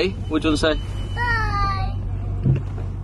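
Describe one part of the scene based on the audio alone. A young child's voice calls out happily.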